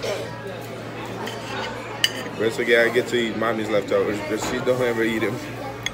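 A knife and fork scrape on a plate.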